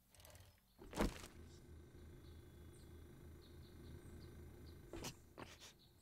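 A motorbike engine rumbles nearby.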